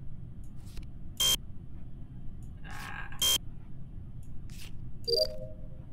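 A card reader buzzes with an error sound.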